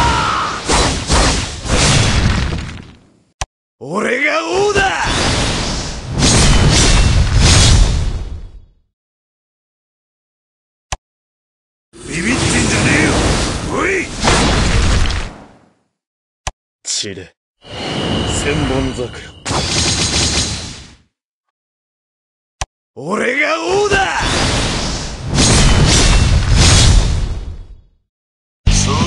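Energy blasts whoosh and boom loudly.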